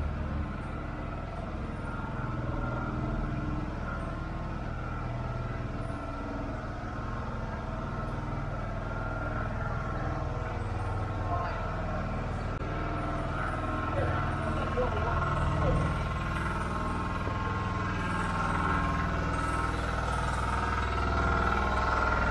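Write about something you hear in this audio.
Traffic hums steadily outdoors along a busy street.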